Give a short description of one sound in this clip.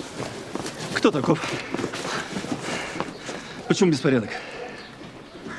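A man asks questions with animation.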